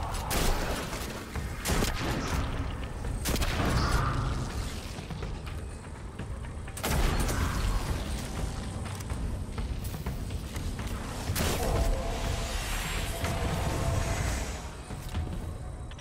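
A deep magical energy roar surges and rumbles.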